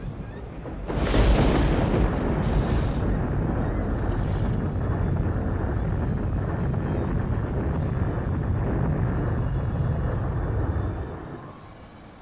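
A huge creature crashes down with a loud, deep rumble.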